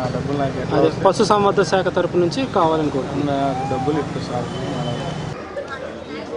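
A middle-aged man speaks calmly into microphones up close.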